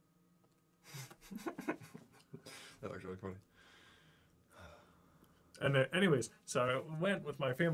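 A man laughs over a microphone.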